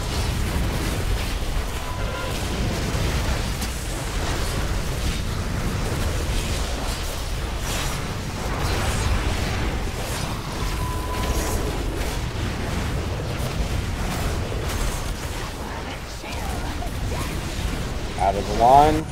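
Game spell effects and combat impacts clash and whoosh continuously.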